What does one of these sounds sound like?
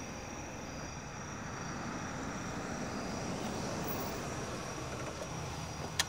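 A car drives up and stops.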